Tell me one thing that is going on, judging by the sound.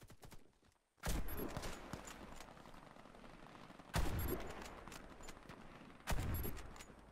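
A rifle fires loud single shots that ring out.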